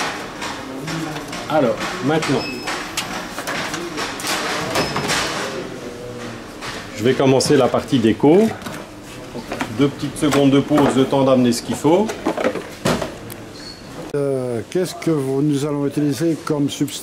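A middle-aged man talks calmly and explains close to a microphone.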